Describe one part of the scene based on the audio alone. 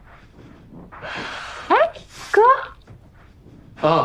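A young woman speaks brightly, close by.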